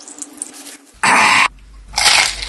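A young man bites and crunches into food, close by.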